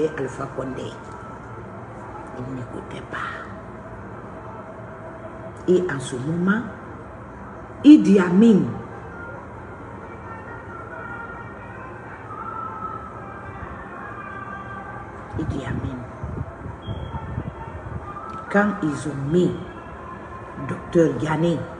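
A middle-aged woman speaks with animation close to a microphone, with pauses.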